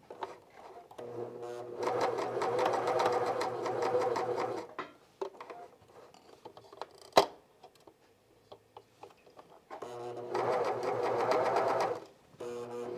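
A sewing machine stitches fast in steady bursts.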